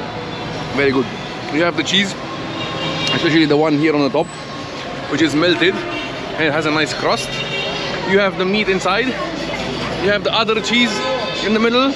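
A young man talks with animation close by.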